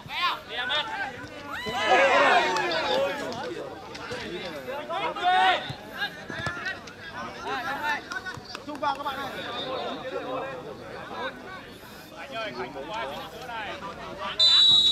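Men shout to each other across an open outdoor pitch.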